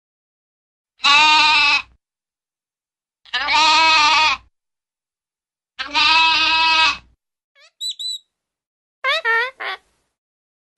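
A young goat bleats loudly, again and again.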